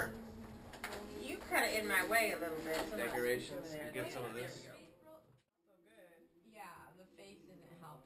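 Several women talk and laugh together nearby.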